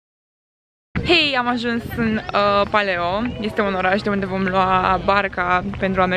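A young woman talks excitedly and close up into a microphone.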